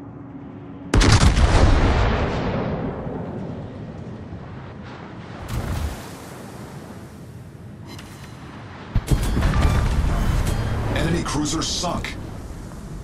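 A battleship's main guns fire heavy salvos that boom and rumble away.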